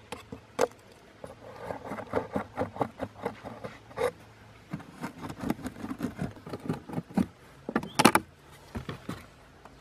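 Cardboard rustles and creaks under hands.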